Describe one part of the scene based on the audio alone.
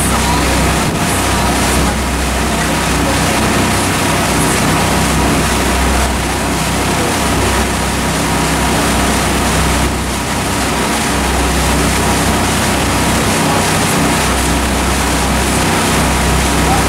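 A boat engine hums steadily and low.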